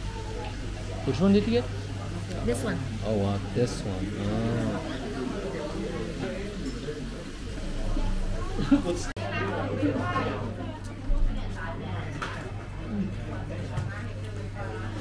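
A young woman talks casually nearby.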